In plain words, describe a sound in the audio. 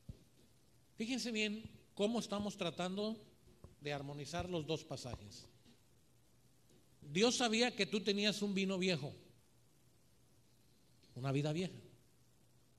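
A middle-aged man preaches with animation into a microphone, in bursts with pauses, in a slightly echoing room.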